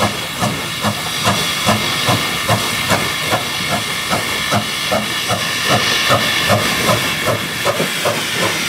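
A steam locomotive chuffs in a steady rhythm as it approaches.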